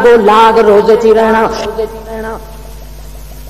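A man chants loudly through a microphone with an echo.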